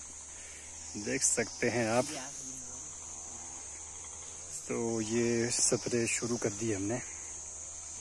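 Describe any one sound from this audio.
A young man talks outdoors at a short distance.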